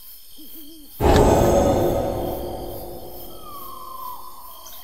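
A magical shimmering whoosh swells and slowly fades.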